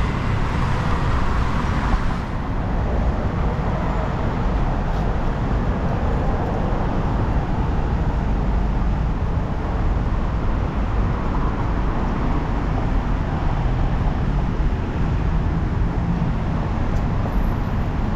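Wind rumbles and buffets steadily outdoors.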